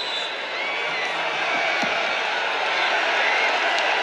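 Wrestlers thud onto a padded mat.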